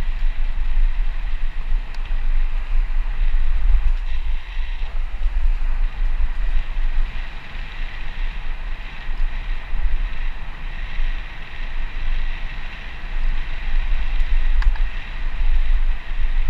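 Bike tyres roll and crunch over a dirt path.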